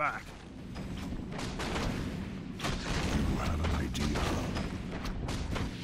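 Blades clash and thud in a fast fight.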